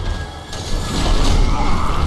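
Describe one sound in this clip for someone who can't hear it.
A heavy hammer swings and smashes with loud impacts.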